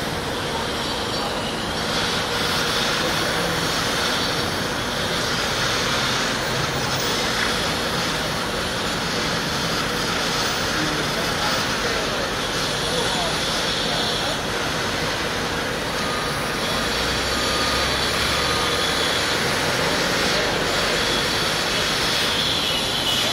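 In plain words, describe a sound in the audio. A construction crane's engine runs outdoors as the crane swings.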